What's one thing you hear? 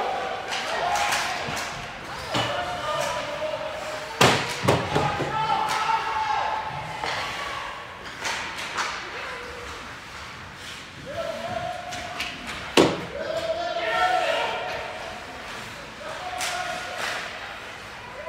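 Hockey sticks clack sharply against a puck and each other in a large echoing rink.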